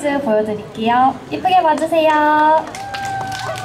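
A young woman speaks brightly into a microphone, heard through a loudspeaker outdoors.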